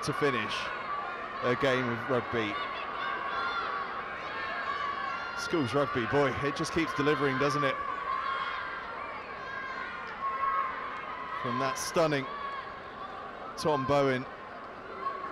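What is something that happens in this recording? Young men shout and cheer in loud bursts.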